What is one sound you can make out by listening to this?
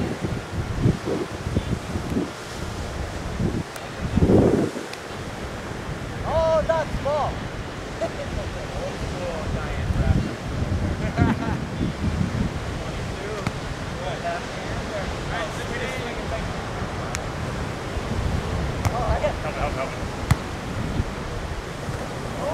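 Wind blows across the open beach.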